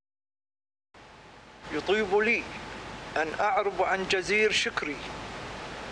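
An elderly man speaks calmly into a microphone.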